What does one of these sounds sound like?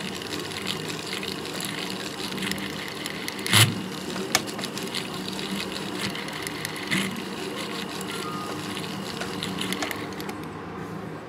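A small metal graver scrapes and clicks against metal.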